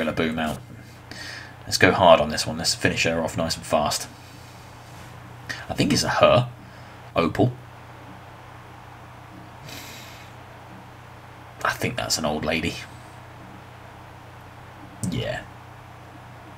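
A man talks with animation into a close microphone, in bursts.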